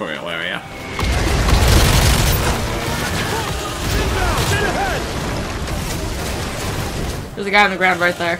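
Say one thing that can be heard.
A rifle fires in rapid bursts nearby.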